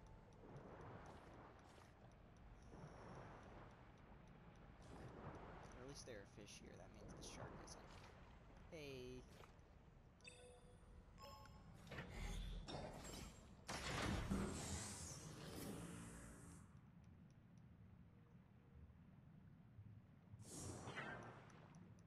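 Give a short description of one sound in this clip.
A diver swims through water with soft whooshing sounds.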